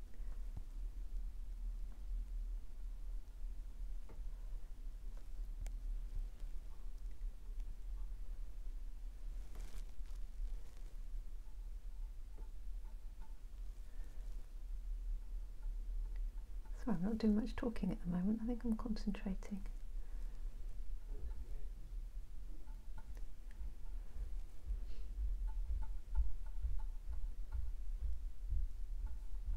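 A paintbrush brushes softly across canvas.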